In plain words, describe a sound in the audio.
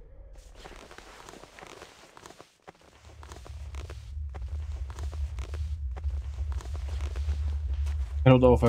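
Footsteps tread steadily on a stone floor.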